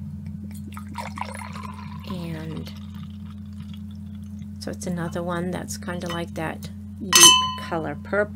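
Wine glugs as it pours from a bottle into a glass.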